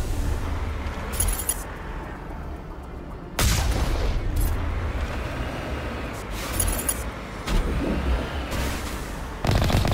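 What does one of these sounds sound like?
A six-wheeled armoured rover rumbles over rough ground.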